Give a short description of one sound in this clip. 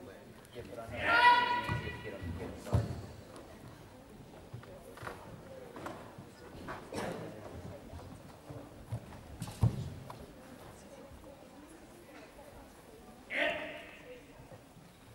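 A young girl shouts sharply in a large echoing hall.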